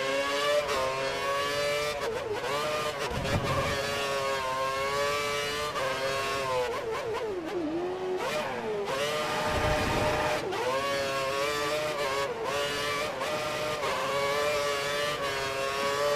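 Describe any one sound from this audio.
A racing car engine screams at high revs, rising and dropping in pitch as the gears shift.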